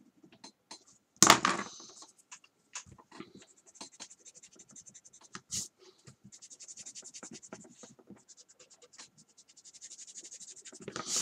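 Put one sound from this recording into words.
A pencil scratches on paper with quick short strokes.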